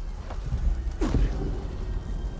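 A heavy thud sounds as someone lands hard on stone.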